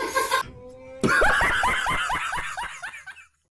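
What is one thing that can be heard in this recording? A man laughs loudly and heartily close by.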